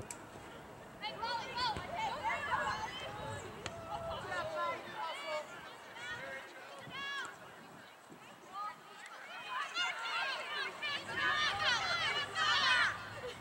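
Players shout to each other outdoors, from across an open field.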